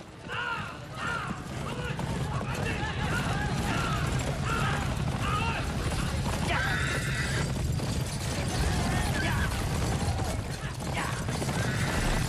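Horses' hooves clop on a dirt street.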